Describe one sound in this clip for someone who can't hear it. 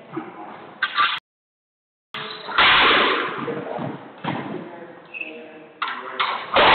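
A squash ball smacks off rackets and the front wall in a small echoing court.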